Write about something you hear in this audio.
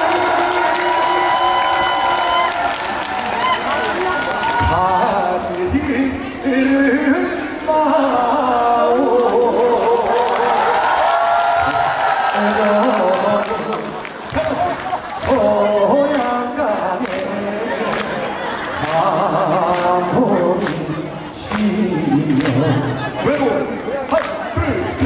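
A young man sings loudly through a microphone over loudspeakers outdoors.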